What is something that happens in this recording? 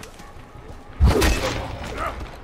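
A bowstring snaps as an arrow is loosed with a sharp thwack.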